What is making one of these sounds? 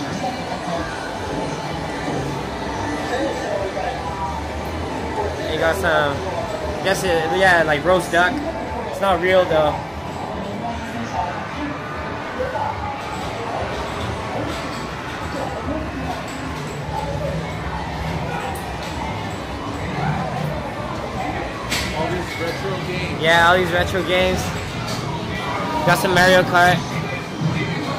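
Arcade game machines play electronic music and beeping sound effects.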